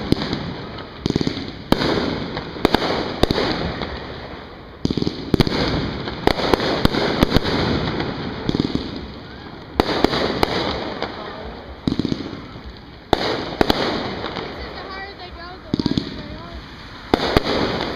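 Fireworks boom and bang loudly nearby, one after another.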